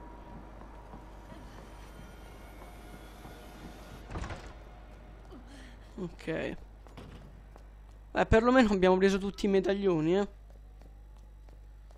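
Footsteps walk across a wooden floor and down stairs.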